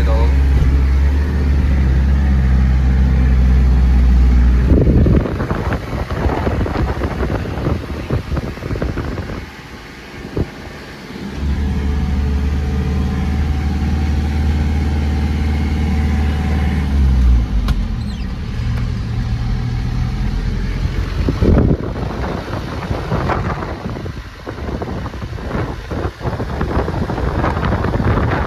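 A vehicle engine hums low and steady, rising and falling as it changes speed.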